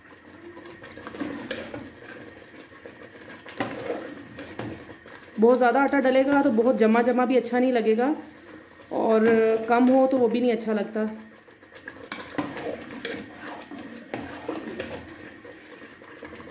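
A ladle scrapes and clinks against a metal pot while stirring a thick mixture.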